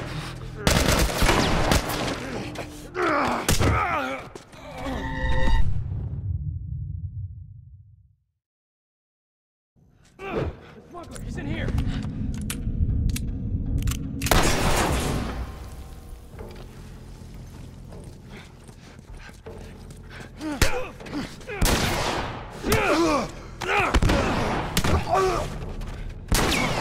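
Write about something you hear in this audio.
Heavy blows thud in a fight.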